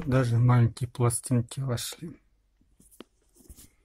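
Record sleeves rustle and knock as they are flipped through.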